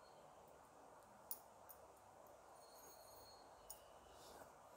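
Leaves drop into simmering water with a soft patter.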